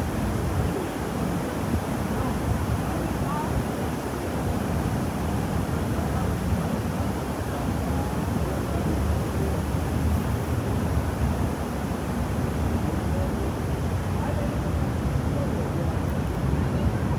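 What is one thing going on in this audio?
Wind blusters across the microphone outdoors.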